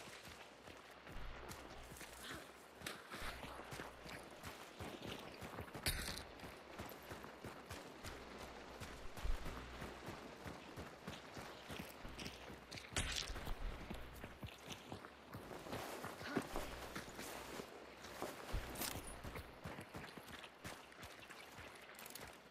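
Footsteps crunch on dry ground and leaves.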